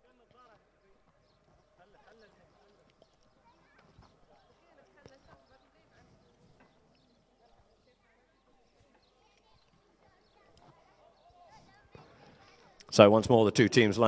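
Horses' hooves thud on grass as they gallop.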